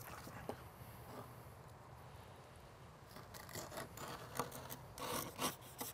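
A knife slices through fish.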